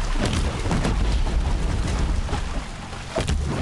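Explosions burst and crackle.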